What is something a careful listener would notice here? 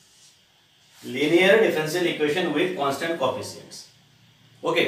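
A middle-aged man speaks calmly, explaining, close to a microphone.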